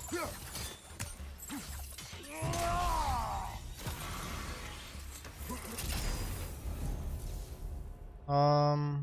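Weapons swing and clash amid crackling fire.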